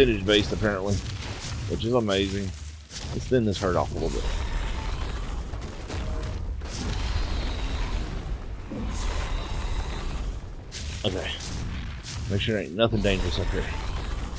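A dragon roars loudly in rising and falling calls.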